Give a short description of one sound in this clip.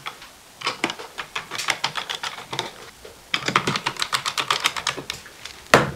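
A screwdriver clicks against metal screws.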